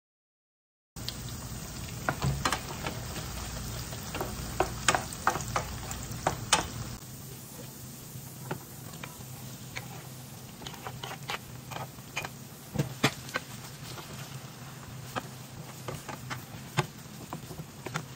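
Onions sizzle in a frying pan.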